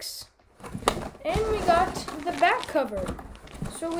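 Plastic packaging crinkles.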